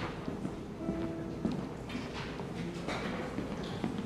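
Footsteps tap across a wooden stage in a large hall.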